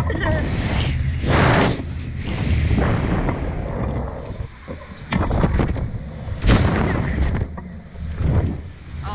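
A boy laughs and shouts close by.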